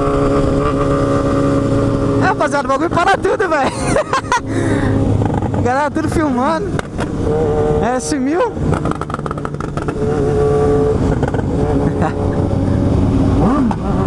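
A motorcycle engine drones steadily up close.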